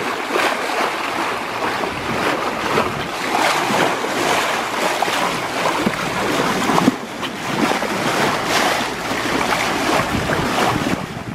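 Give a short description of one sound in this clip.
Water rushes and splashes against the side of a moving boat.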